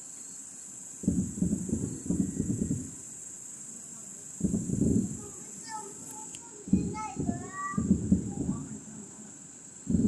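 Fireworks boom and rumble far off.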